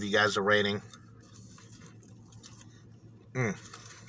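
A man chews food close by.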